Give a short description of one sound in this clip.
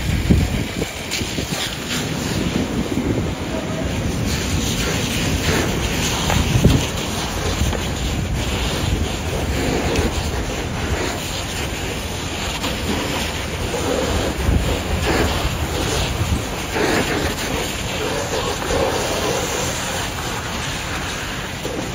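Water from a fire hose sprays and hisses onto a burning car.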